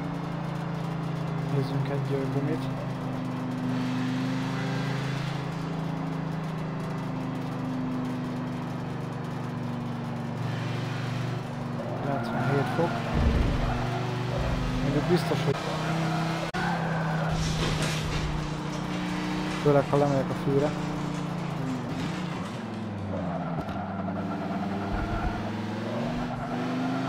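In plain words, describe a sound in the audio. A racing car engine drones steadily and revs up and down.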